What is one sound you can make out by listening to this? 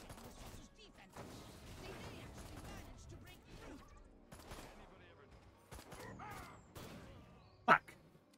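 Gunfire and energy blasts crackle rapidly.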